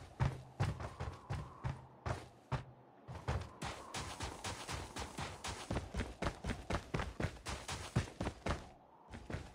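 Quick footsteps thud steadily on a hard floor and on the ground outside.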